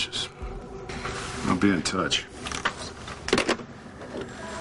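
A middle-aged man speaks into a phone.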